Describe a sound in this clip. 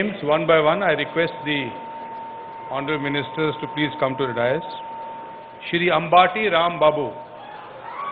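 An elderly man speaks slowly into a microphone, heard through loudspeakers.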